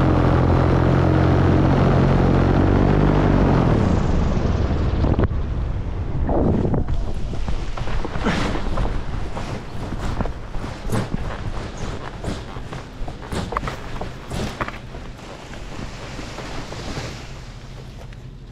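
Wind rushes and buffets past.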